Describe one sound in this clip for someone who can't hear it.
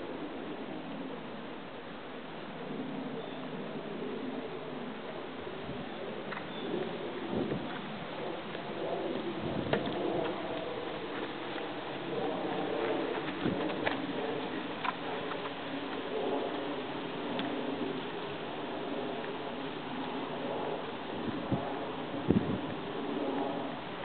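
A horse's hooves thud softly on sand as it canters.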